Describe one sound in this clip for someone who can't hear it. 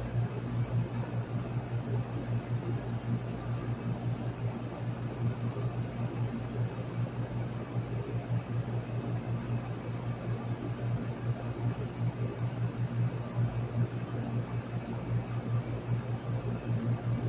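An air conditioner fan hums and whirs steadily with a low drone.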